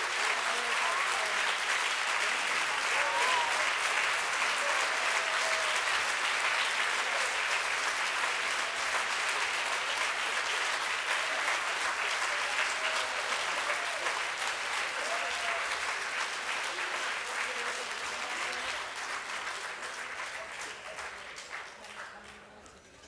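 A large crowd claps and cheers loudly in a big echoing hall.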